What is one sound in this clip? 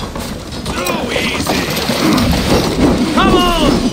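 Heavy wooden wheels roll and creak.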